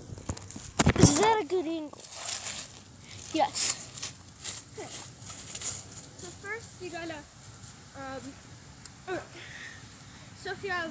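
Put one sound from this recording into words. A young boy talks close by, in short bursts.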